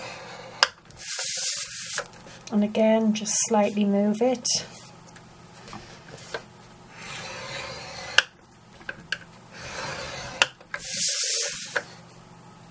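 A sheet of card slides across a board with a brushing swish.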